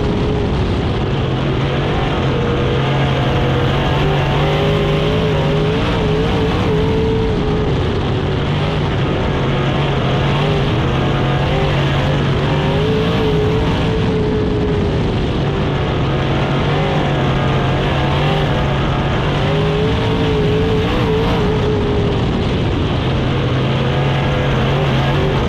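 A race car engine roars loudly up close, revving up and down.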